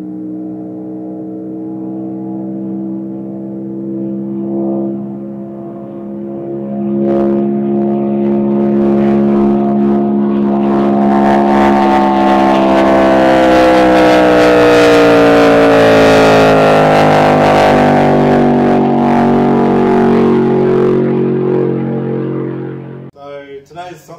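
A race car engine roars loudly as the car speeds past, its pitch dropping as it goes by.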